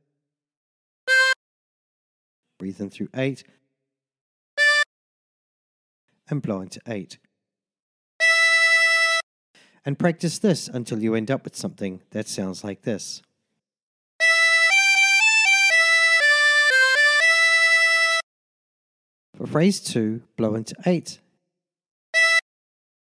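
Single harmonica notes sound, then a short harmonica melody plays in clear, steady tones.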